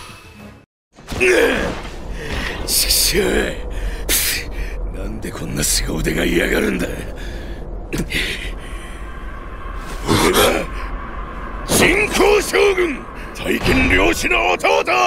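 Weapons clash and strike with sharp, heavy blows in a fight.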